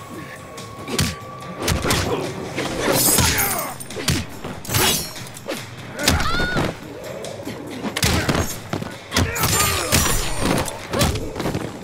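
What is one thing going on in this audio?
Heavy punches and kicks land with loud thuds and cracks.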